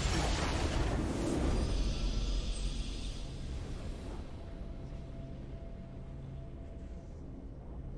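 A triumphant fanfare plays and slowly fades.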